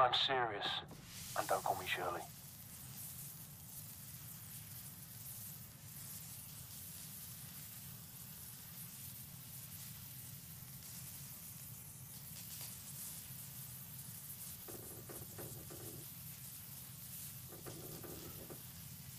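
A sparkler fizzes and crackles steadily close by.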